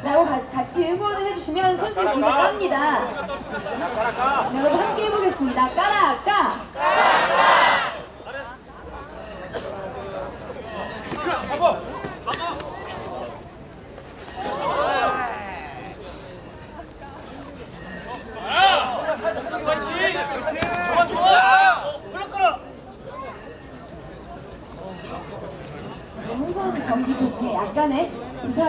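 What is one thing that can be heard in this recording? A young man speaks loudly and with animation to an audience outdoors.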